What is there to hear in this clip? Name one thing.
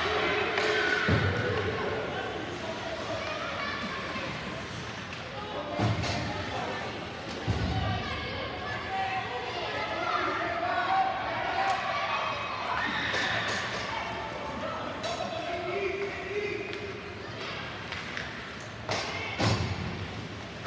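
Young players call out to each other across an echoing rink.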